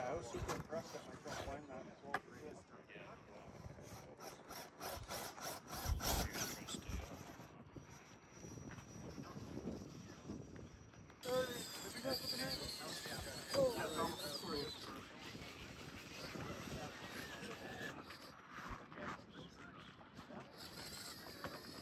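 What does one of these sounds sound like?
A small electric motor whines as a toy truck crawls over rock.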